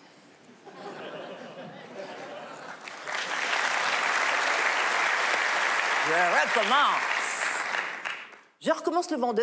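A large audience applauds and laughs.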